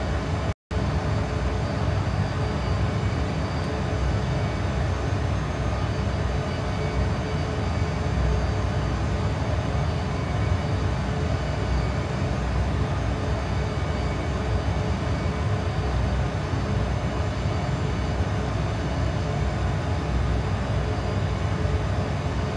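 Jet engines drone with a steady low roar.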